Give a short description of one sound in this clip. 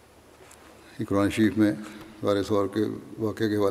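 A man speaks into a microphone in a steady, echoing voice in a large hall.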